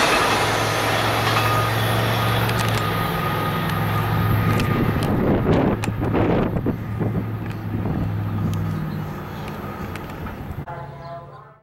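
A freight train rumbles past on the tracks with a low, steady drone.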